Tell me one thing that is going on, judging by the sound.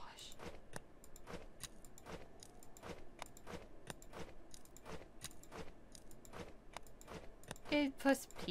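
Running footsteps thud quickly and steadily on sand.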